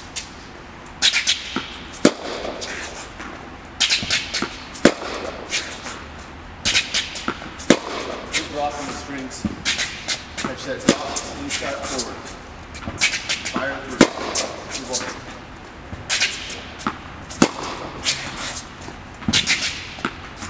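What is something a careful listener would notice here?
Sneakers squeak and scuff on a hard court.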